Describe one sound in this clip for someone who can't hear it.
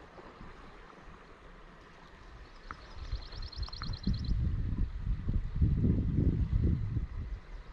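Small waves lap gently against a canoe.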